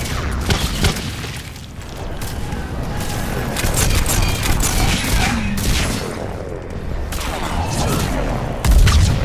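Gunfire cracks in rapid bursts.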